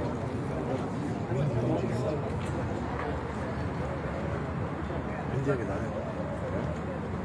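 A crowd of men and women talks and murmurs outdoors close by.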